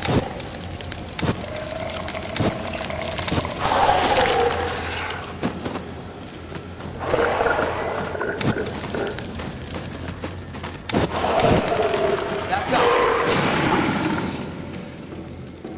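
Flames roar and burst.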